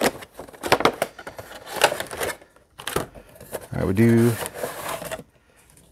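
Cardboard packaging rustles and knocks as it is handled.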